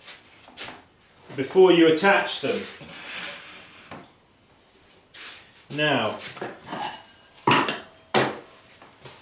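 Wooden tools knock and scrape on a work table.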